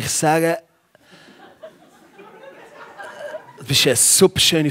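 An audience laughs softly in a hall.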